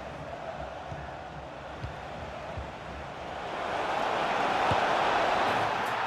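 A stadium crowd roars, growing louder as an attack nears the goal.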